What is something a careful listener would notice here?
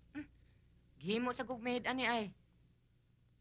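A second young woman answers nearby.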